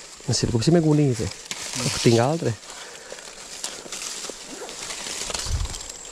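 Leaves rustle as hands push through plants.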